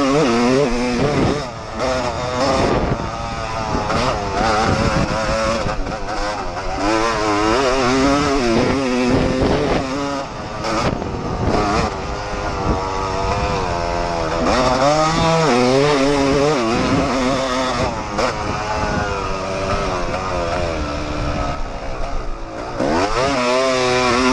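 A dirt bike engine roars loudly up close, revving up and down.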